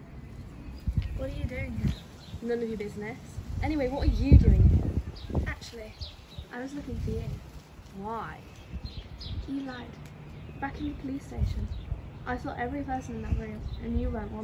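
A young woman speaks quietly and emotionally nearby.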